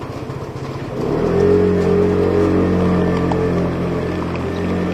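A scooter engine starts up and hums steadily.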